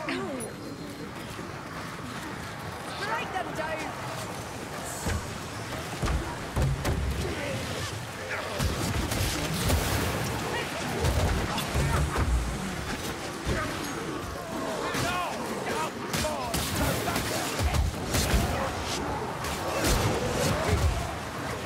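Blades swing and strike with heavy thuds.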